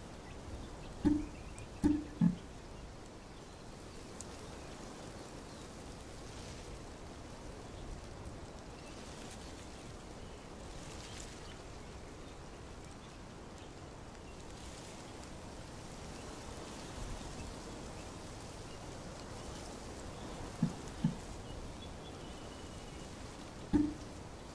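Short soft electronic blips sound now and then.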